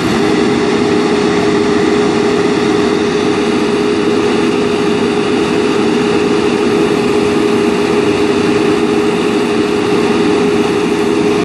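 A large truck engine idles with a loud steady rumble close by.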